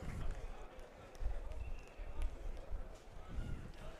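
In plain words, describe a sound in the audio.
Baseball players slap hands in high fives.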